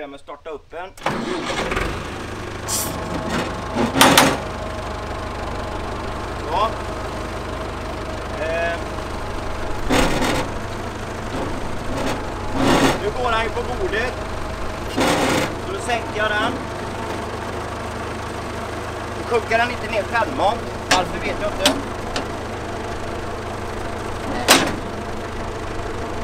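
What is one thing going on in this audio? A tractor engine starts and idles steadily.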